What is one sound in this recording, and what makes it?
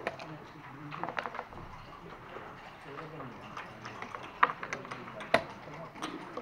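Dice rattle and clatter on a board.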